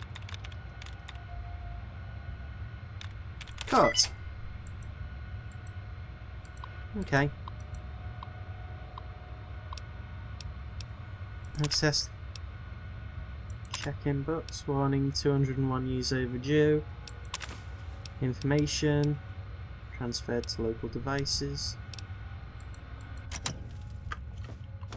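A computer terminal hums low and steady.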